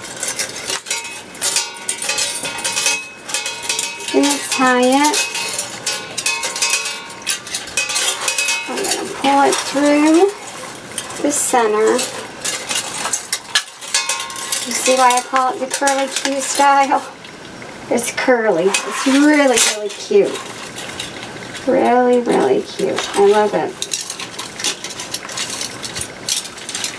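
Stiff plastic mesh rustles and crinkles as hands handle it.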